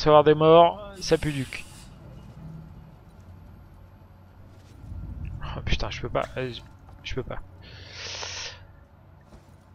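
Steam hisses in short bursts.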